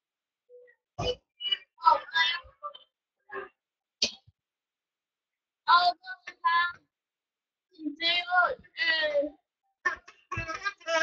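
A teenage boy sings and shouts excitedly close by.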